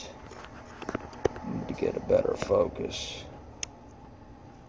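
A knife blade scrapes and clicks against a metal guide.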